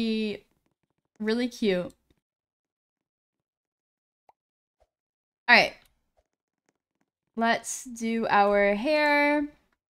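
A young woman speaks and sings playfully into a close microphone, in short bursts with pauses.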